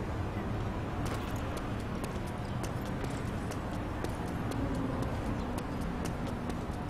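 Footsteps run quickly across a hard stone floor in a large echoing hall.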